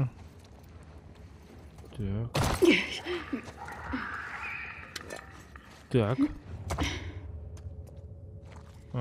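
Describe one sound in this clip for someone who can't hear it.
Footsteps crunch on a debris-strewn floor.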